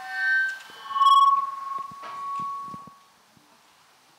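A man sings through a microphone and loudspeaker.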